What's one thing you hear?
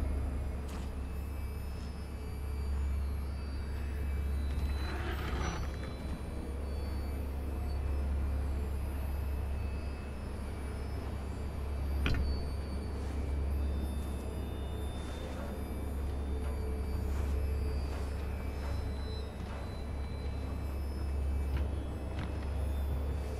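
Footsteps crunch slowly over rough ground.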